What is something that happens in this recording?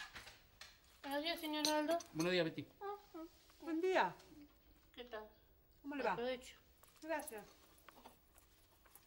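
An elderly woman speaks with animation nearby.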